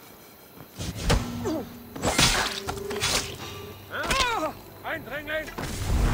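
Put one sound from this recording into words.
A man grunts in pain.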